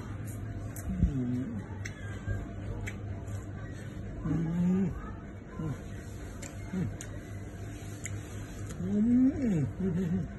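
A young man hums with pleasure while eating.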